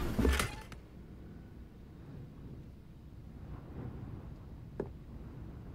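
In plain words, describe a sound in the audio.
Footsteps thud softly on wooden floorboards.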